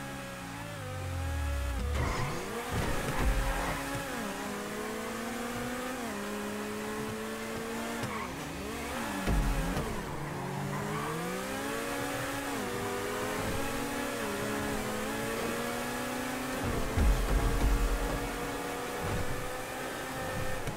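Tyres screech on the road.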